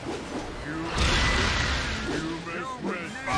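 A magic spell bursts with a bright, rushing shimmer.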